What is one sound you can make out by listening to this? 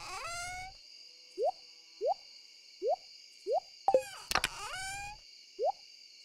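A bright game chime with a click sounds.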